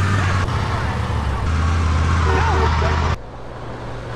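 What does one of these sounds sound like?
A car engine idles with a low hum.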